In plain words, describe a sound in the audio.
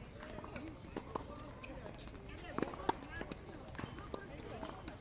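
A tennis racket strikes a ball with sharp pops, outdoors.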